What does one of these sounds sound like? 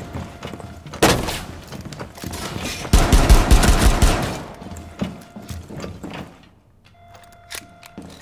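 Bullets crack and smash against thick glass.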